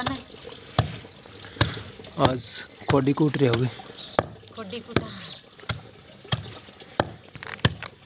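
A wooden pestle thuds steadily into a stone mortar.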